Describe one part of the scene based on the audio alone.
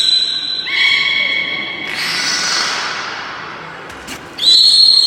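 A beluga whale makes high, whistling squeals.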